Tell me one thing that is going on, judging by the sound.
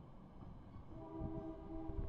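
A train horn blows loudly.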